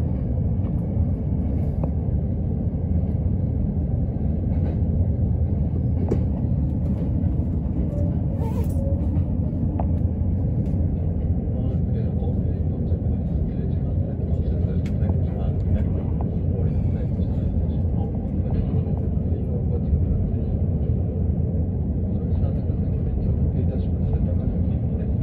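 Rain patters against a train window.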